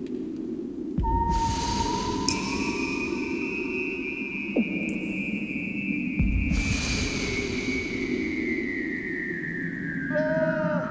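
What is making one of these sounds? A seal calls underwater with long, slowly falling trills and whistles.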